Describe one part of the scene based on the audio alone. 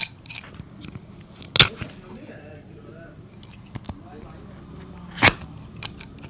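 Something rubs and scrapes against a rubber sole.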